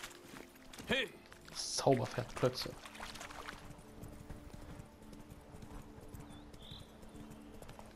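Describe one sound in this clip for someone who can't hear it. A horse gallops with hooves thudding on sand.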